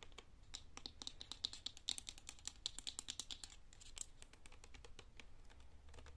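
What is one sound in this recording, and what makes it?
Long fingernails tap and scratch quickly on a plastic cup close up.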